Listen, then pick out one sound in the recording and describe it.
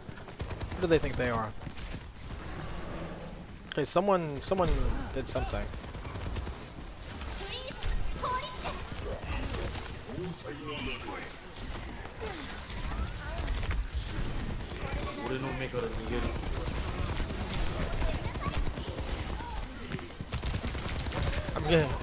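Game weapons fire in rapid bursts with blasts and impacts.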